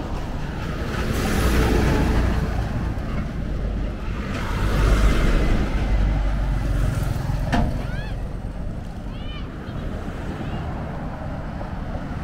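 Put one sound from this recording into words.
Trucks and cars rush past close by on a road, each swelling and fading.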